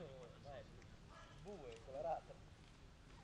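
Men talk outdoors at a distance.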